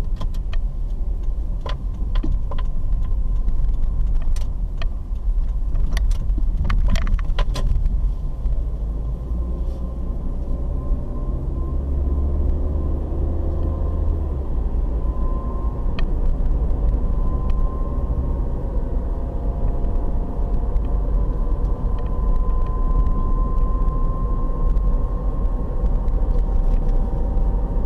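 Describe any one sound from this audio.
Tyres roll over the road with a steady low rumble.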